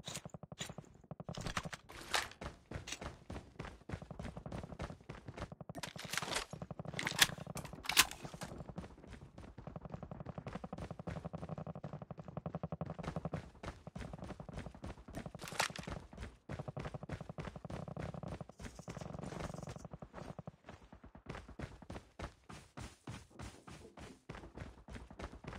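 Footsteps of a game character thud quickly and steadily on hard ground.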